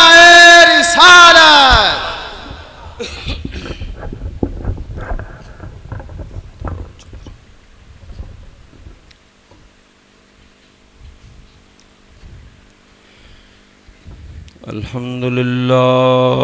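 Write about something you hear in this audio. An elderly man chants loudly through a microphone and loudspeakers, echoing in a hall.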